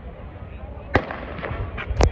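A starting pistol fires with a sharp crack.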